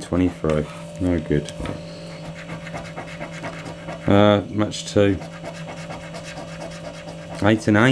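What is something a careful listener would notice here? A coin scratches across a card with a dry, rasping sound.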